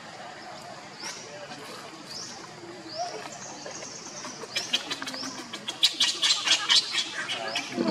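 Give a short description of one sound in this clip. A baby monkey gives high, short squeaks.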